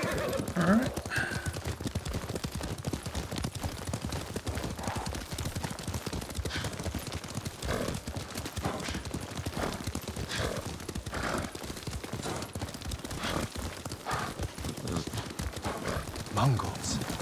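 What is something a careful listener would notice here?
Horses gallop with rapid hoofbeats on a dirt path.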